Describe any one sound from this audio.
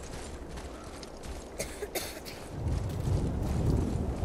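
Heavy footsteps tread on a dirt path.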